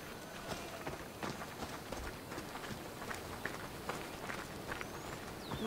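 Footsteps crunch quickly on sand and pebbles.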